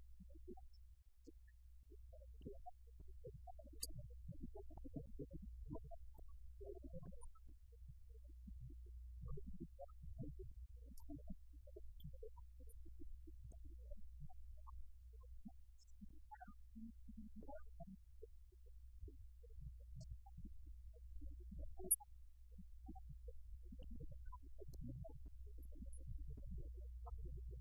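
A man speaks calmly and steadily at a distance.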